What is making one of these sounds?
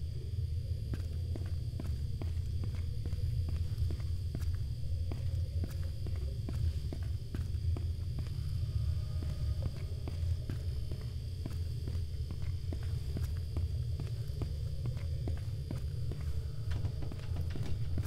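Footsteps crunch steadily on a gritty floor.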